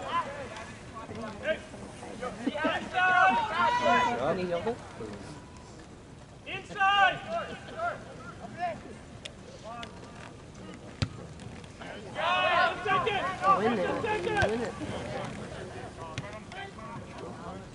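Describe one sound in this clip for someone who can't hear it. Men shout loudly across an open outdoor field.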